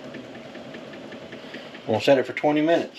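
Water bubbles at a boil in a pot.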